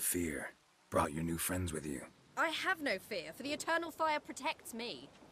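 A young woman answers calmly and confidently.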